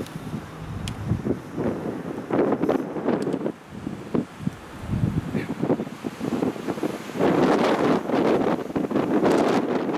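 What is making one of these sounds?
Wind blows in strong, uneven gusts outdoors.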